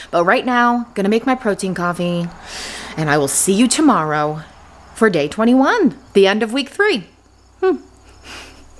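A woman talks close up with animation.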